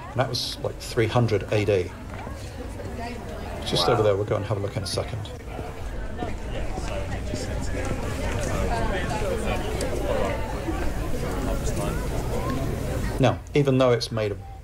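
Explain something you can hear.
An older man talks calmly and close into a microphone.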